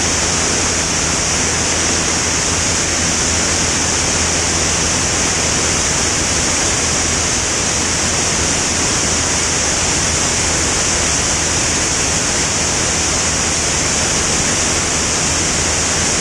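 Wind rushes hard past the aircraft.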